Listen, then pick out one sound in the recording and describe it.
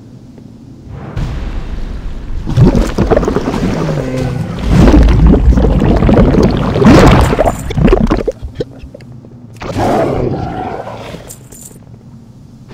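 Spell blasts and blows crash loudly in a fight with a monster.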